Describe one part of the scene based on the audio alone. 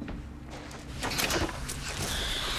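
A small drawer rattles open.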